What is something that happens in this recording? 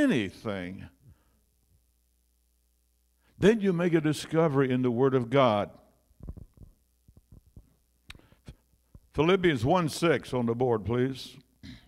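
An elderly man speaks with animation into a microphone, in pauses, in a room with some echo.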